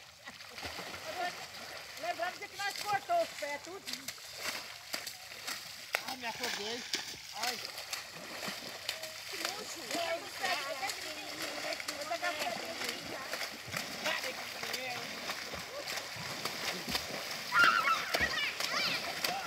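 Children shout and squeal with excitement close by.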